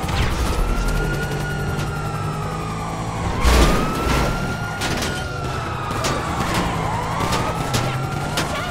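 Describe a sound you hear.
A police siren wails up and down nearby.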